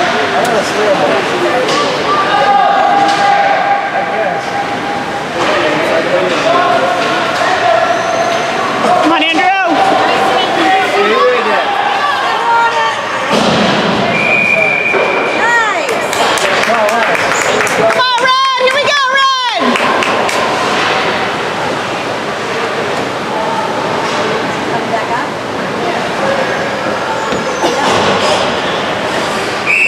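Spectators chatter nearby in an echoing rink.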